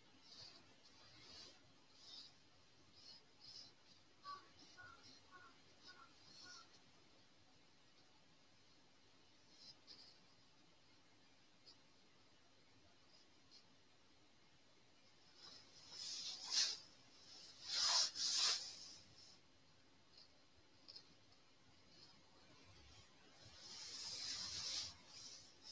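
A brush strokes softly across paper.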